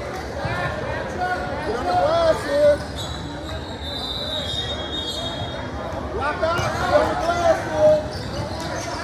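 Girls shout and call out to each other in a large echoing hall.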